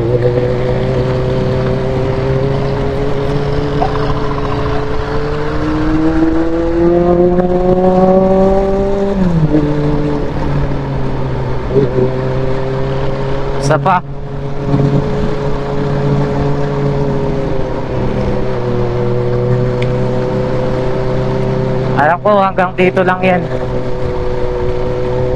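A motorcycle engine hums steadily up close, rising and falling in pitch as it speeds up and slows down.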